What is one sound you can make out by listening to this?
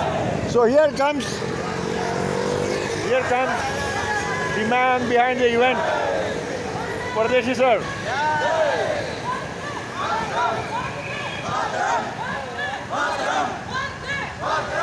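A large group of bicycles rolls along a wet road.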